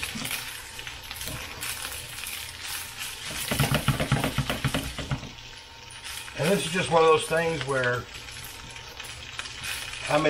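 A spoon scrapes and stirs food in a frying pan.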